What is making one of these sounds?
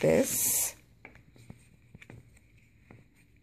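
A booklet is set down on a wooden table with soft taps.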